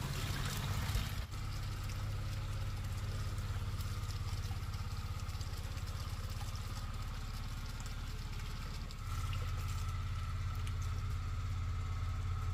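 Tap water pours into a basin of water.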